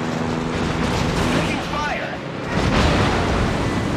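A ship explodes with a loud blast.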